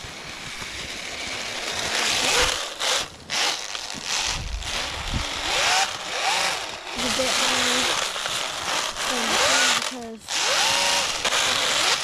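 A small toy car's electric motor whines and revs up and down.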